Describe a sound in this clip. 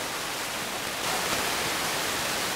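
Water splashes loudly as a large animal lands in a shallow river.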